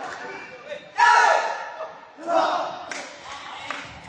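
Young men shout together in a loud team cheer.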